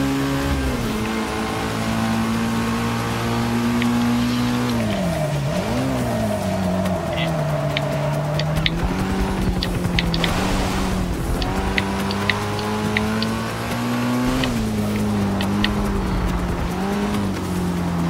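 A car engine roars steadily, dropping in pitch as it shifts and slows into corners, then rising again.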